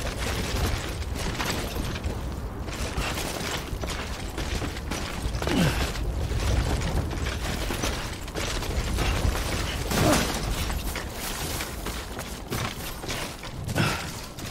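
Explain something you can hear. Footsteps tread heavily over grass and rock.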